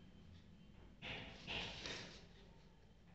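A ruler slides across paper.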